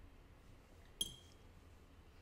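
A paintbrush clinks against a metal paint tin.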